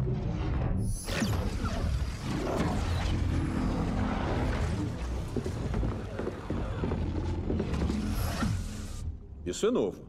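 Laser beams crackle and buzz loudly.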